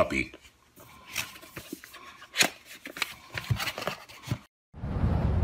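Cardboard rustles and scrapes as a small box is opened by hand.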